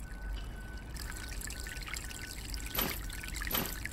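Water runs from a tap into a basin.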